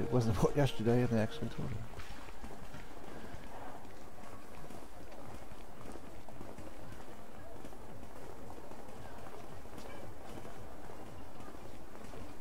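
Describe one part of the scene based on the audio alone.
Footsteps shuffle on stone paving.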